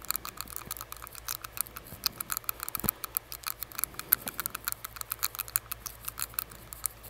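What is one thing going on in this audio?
Fingertips crinkle and rustle against a paper face mask close to a microphone.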